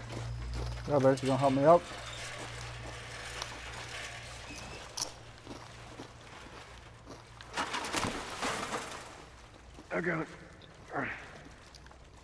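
A young man talks briefly into a close microphone.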